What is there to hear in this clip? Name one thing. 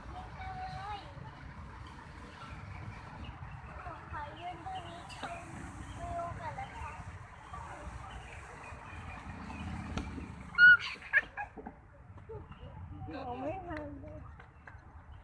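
A young girl chatters and calls out nearby, outdoors.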